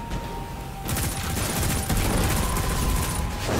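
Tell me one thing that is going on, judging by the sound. Gunfire bursts with sharp explosive bangs.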